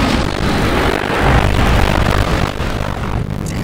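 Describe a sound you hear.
A huge blast booms deep and loud.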